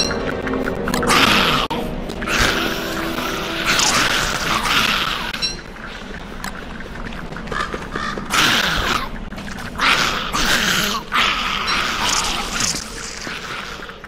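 Spiders hiss and screech in short bursts.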